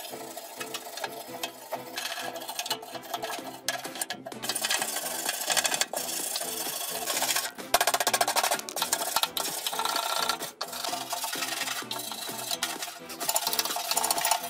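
A scraper blade grinds against rusty metal.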